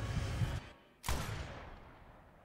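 A loud gunshot cracks and rings out.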